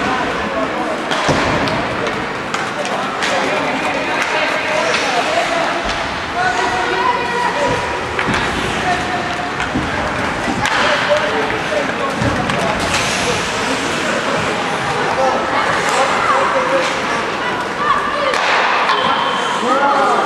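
Young players shout to each other in an echoing rink.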